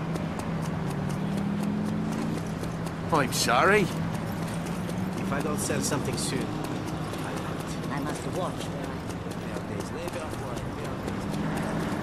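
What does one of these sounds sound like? Footsteps run quickly across cobblestones.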